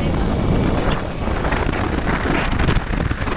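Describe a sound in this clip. A motorbike engine hums while riding along a road.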